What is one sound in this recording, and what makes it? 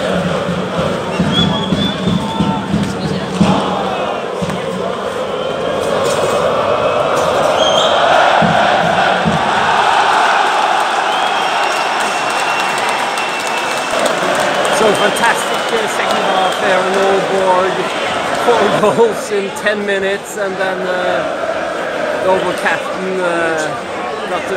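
A large stadium crowd chants and cheers loudly outdoors.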